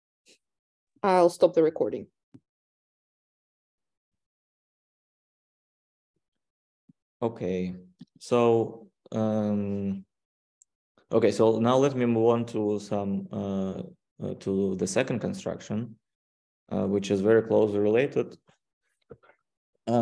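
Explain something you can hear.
A man speaks calmly, heard through an online call, in short phrases with pauses.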